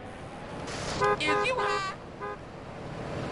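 A car horn honks several times nearby.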